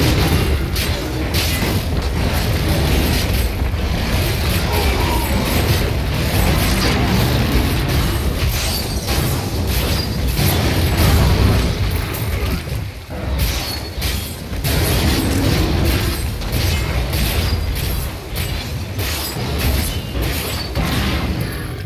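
Heavy blows and clashing sounds ring out in a fierce fight.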